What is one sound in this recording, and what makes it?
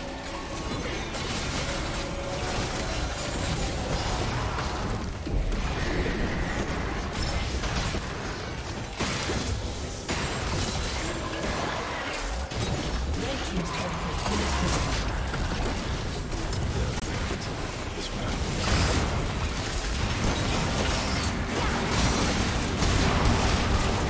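Game spell effects crackle, whoosh and clash in a busy fight.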